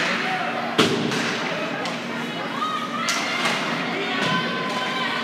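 Hockey sticks clack against a puck now and then.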